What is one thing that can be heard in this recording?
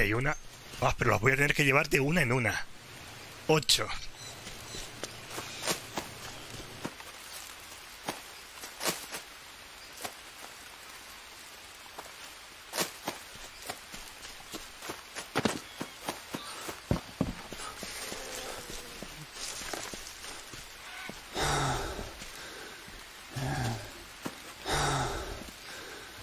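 Footsteps tread over leafy forest ground.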